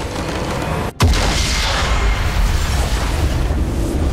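A loud game explosion booms and rumbles away.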